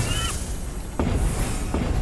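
A fiery blast bursts with a crackle.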